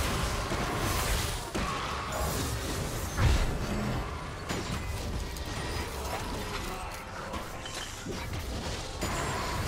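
Spell effects whoosh and burst in a video game battle.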